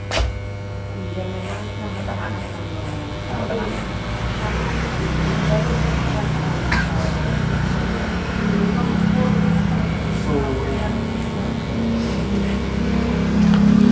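Electric hair clippers buzz as they cut hair.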